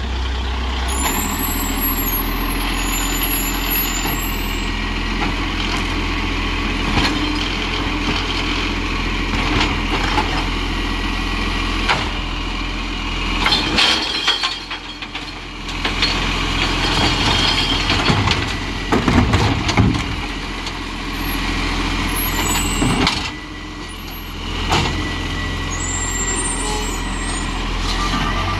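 A garbage truck's diesel engine idles with a steady rumble.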